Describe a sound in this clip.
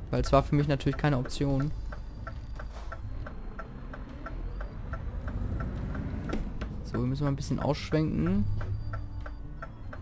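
A turn signal ticks steadily.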